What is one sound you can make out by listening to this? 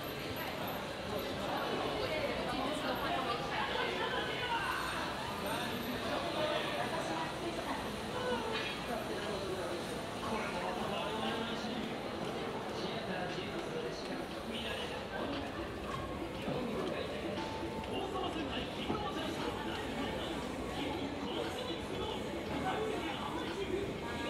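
A crowd of people talks and murmurs in the background.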